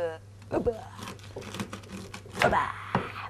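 A knife slices crisply through cabbage on a cutting board.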